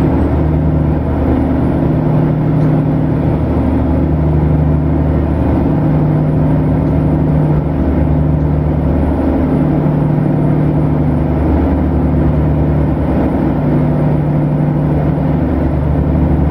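Tyres roll with a steady rumble on the road.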